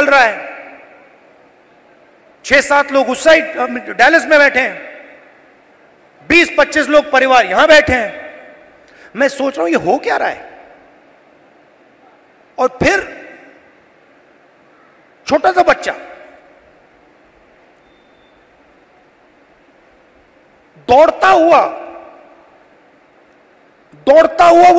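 A man speaks forcefully into a microphone in short bursts, with echoing pauses.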